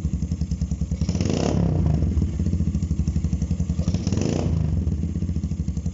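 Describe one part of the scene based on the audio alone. A motorcycle engine revs up briefly twice and settles back.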